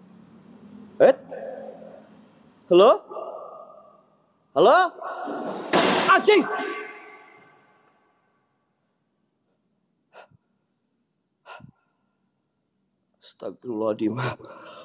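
Hands clap sharply, ringing with echo in an empty room.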